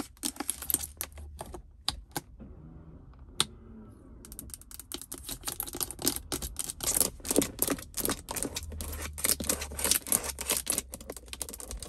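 Fingernails tap and click quickly on hard plastic, close up.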